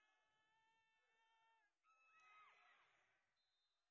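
A whistle blows shrilly in a large echoing hall.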